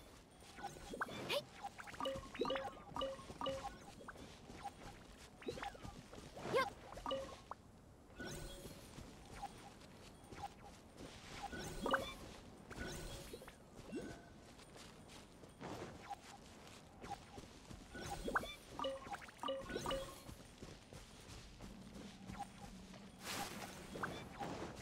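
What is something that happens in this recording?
Game chimes ring out as items are picked up.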